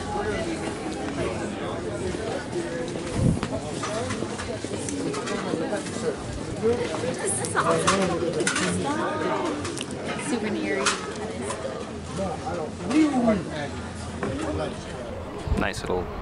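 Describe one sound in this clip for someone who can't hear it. A crowd of people chatters on a busy street.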